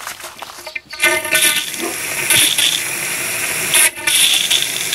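A plastic hose connector clicks and snaps onto a fitting.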